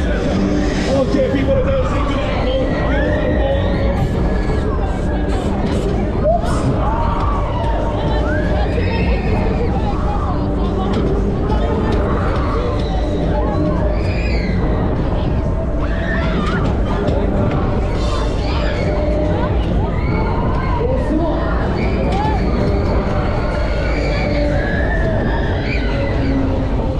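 Wind roars loudly past the microphone throughout.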